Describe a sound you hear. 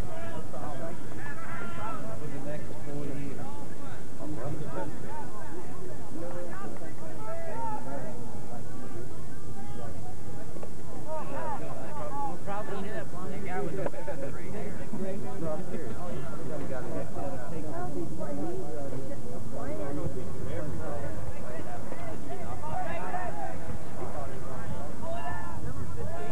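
A crowd of people chatter and call out outdoors.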